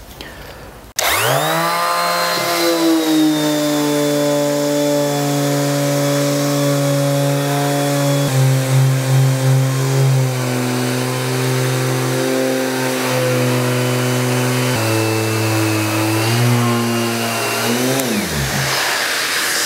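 An electric sander whirs loudly and steadily, then winds down.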